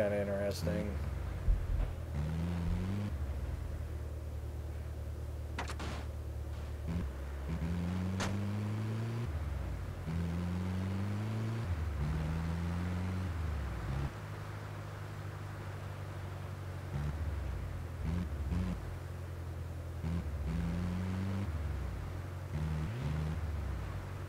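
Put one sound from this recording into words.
A vehicle engine hums and revs up and down as it drives.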